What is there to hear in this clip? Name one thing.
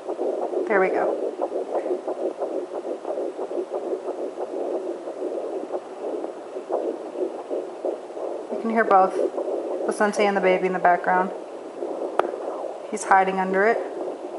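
A handheld heart monitor gives off a fast, rhythmic whooshing heartbeat.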